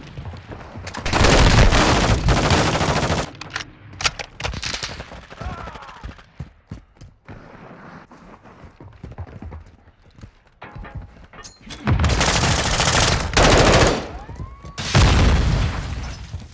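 A rifle fires rapid bursts of loud, sharp shots at close range.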